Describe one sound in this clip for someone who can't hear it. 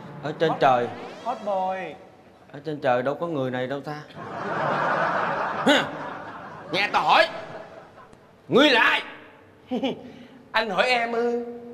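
A man answers into a microphone.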